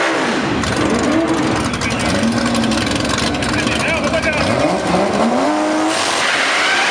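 A racing car engine revs loudly in sharp bursts.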